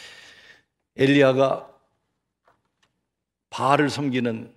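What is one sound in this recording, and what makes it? A middle-aged man preaches with feeling into a microphone, in short bursts with pauses.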